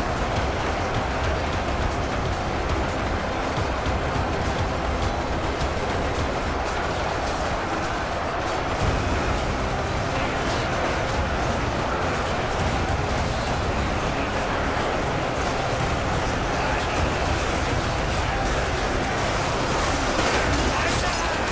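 Boulders crash down among the fighters.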